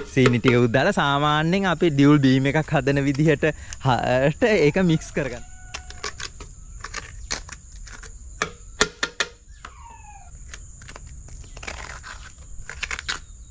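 A metal spoon scrapes and taps against a coconut shell.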